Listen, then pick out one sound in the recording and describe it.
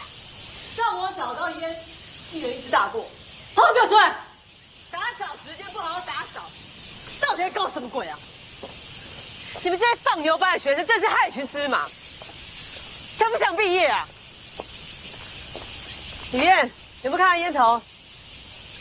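A middle-aged woman scolds loudly and sternly.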